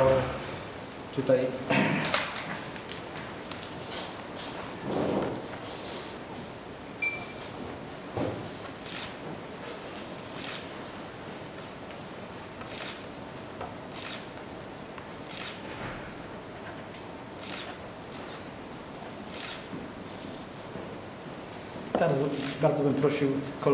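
A man speaks nearby into microphones.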